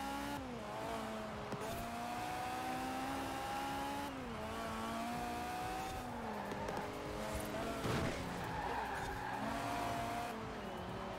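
A car engine roars at high revs, dropping in pitch with each gear shift and climbing again.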